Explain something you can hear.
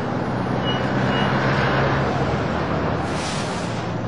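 A bus engine rumbles as it drives along the street.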